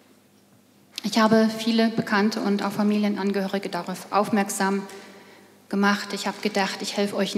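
A middle-aged woman speaks calmly through a microphone over loudspeakers in a large hall.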